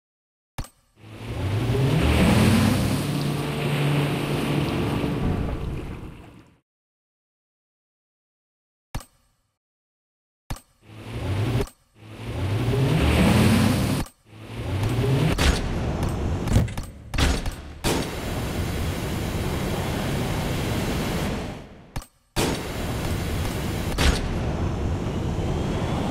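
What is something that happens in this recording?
A speedboat engine roars and revs up.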